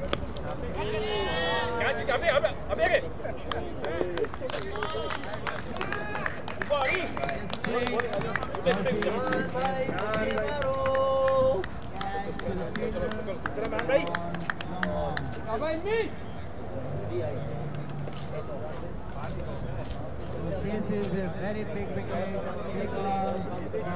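Men talk and call out to each other outdoors, some close by.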